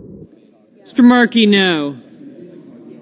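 A man calls out briefly through a microphone.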